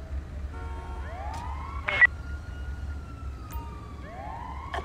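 A siren wails nearby.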